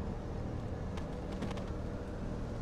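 Feet land with a dull thud.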